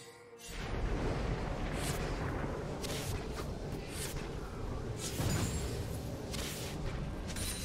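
Fighting sound effects whoosh and crackle in bursts.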